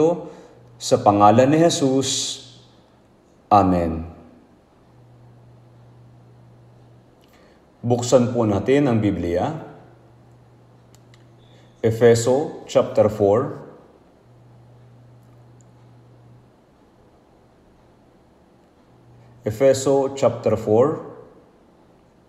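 An elderly man speaks slowly and solemnly through a microphone in a large echoing hall, with long pauses.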